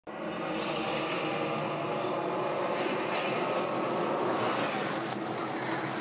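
Race car engines roar loudly around a dirt track.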